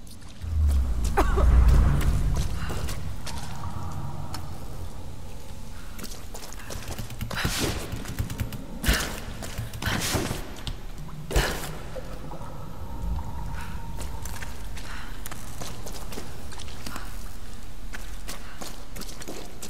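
Footsteps crunch over rubble and wooden boards.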